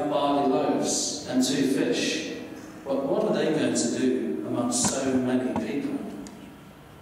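A man speaks calmly into a microphone, heard through a loudspeaker in an echoing hall.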